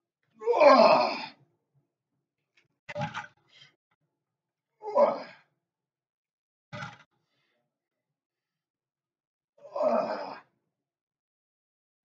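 A loaded barbell clanks against the floor.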